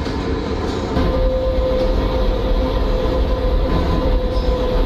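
A train's motor hums louder as the train speeds up.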